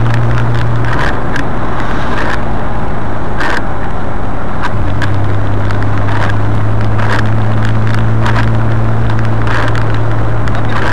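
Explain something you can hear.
Tyres roll over a road with a steady rumble.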